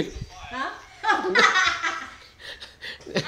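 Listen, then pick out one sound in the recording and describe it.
A middle-aged woman laughs nearby.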